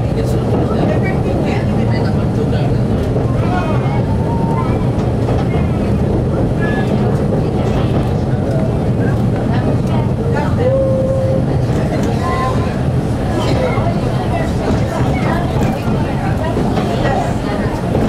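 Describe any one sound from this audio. A train engine rumbles steadily while rolling along the track.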